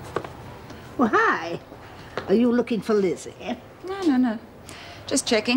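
An elderly woman speaks calmly and close by.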